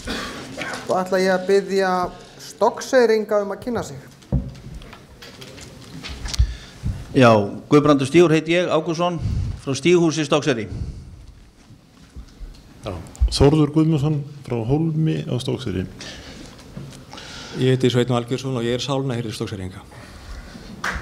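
A man speaks with animation through a microphone in an echoing hall.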